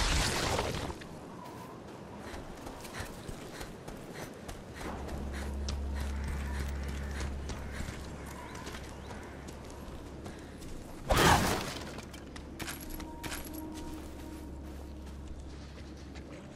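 Footsteps run quickly over the ground.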